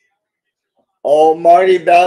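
A man speaks with animation into a microphone, heard as over an online call.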